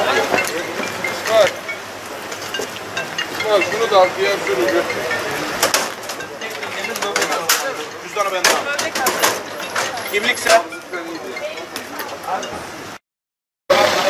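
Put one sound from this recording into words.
Several men talk outdoors.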